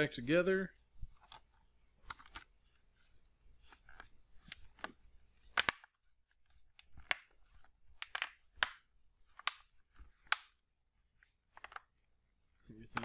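Plastic clicks and knocks as hands pry at a tablet's case.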